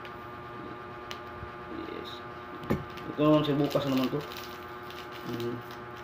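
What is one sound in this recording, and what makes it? A plastic sachet crinkles as it is torn open.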